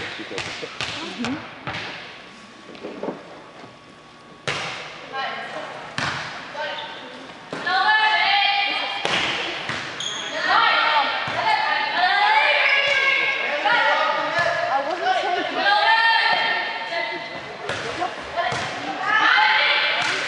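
A volleyball is hit with sharp smacks in a large echoing gym.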